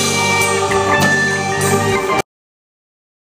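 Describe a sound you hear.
A keyboard plays chords.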